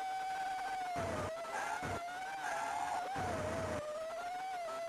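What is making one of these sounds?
Tyres skid on the road in short bursts.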